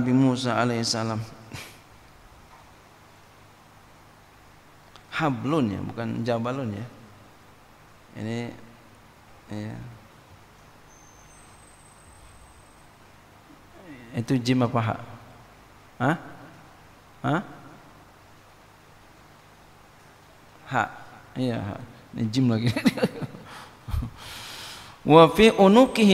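A man speaks into a microphone in bursts with long pauses, calmly and with feeling.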